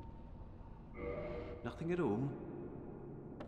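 A man speaks briefly in a deep voice.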